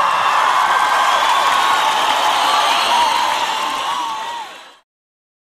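A large crowd cheers and whistles loudly outdoors, then fades out.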